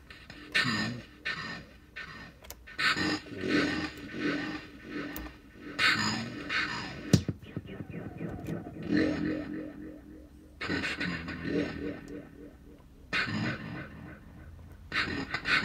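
Buttons click as they are pressed on a small device.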